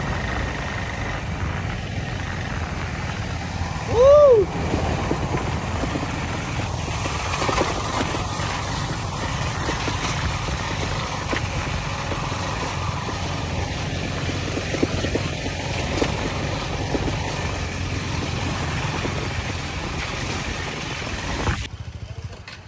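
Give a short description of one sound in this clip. Wind rushes past loudly while riding.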